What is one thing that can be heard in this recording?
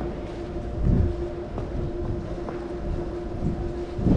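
Heels thud on a wooden stage in a large echoing hall.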